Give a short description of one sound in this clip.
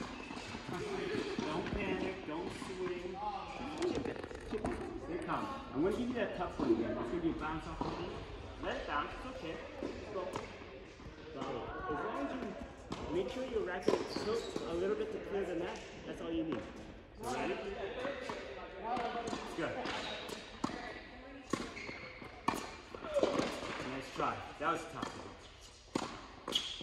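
Tennis rackets strike balls with sharp pops that echo around a large indoor hall.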